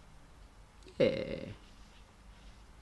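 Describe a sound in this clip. A sheet of card rustles as it is lifted.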